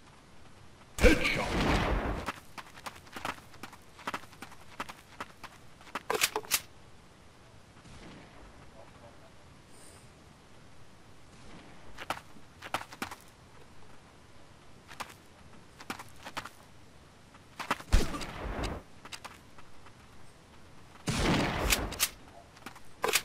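A sniper rifle fires loud, echoing shots.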